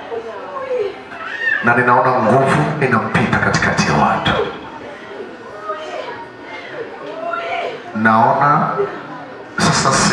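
A man speaks loudly and fervently, leading the prayer.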